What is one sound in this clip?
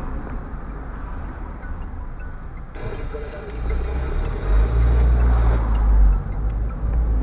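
A delivery truck drives past close by.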